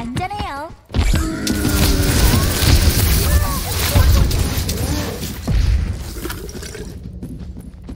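A beam weapon fires with a loud, crackling roar.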